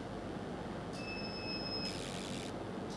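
A laser device beeps with a steady high tone.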